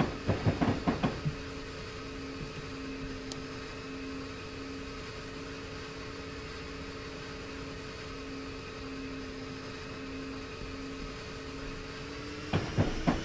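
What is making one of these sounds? A diesel locomotive engine drones steadily.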